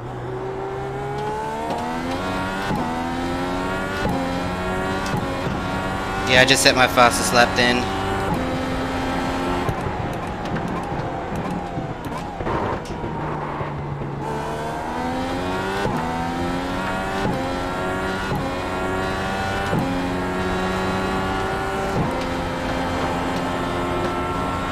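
A racing car engine roars and revs up through the gears.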